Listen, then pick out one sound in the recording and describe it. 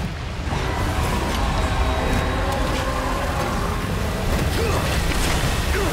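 A huge monster roars from the water.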